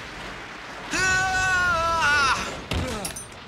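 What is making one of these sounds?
A young boy shouts loudly.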